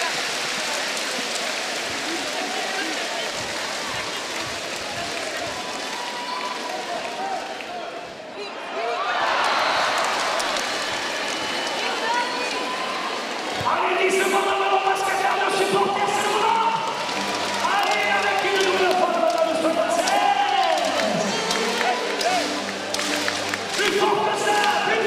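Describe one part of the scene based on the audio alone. A large indoor crowd murmurs and cheers in an echoing hall.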